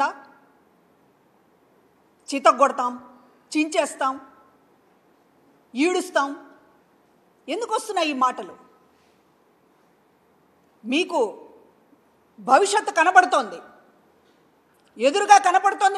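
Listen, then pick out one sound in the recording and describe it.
A middle-aged woman speaks firmly into a microphone in short bursts with pauses.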